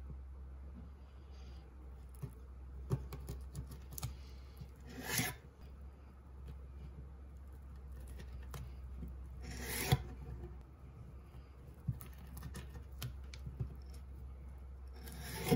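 A knife slices through a sausage and taps on a wooden board.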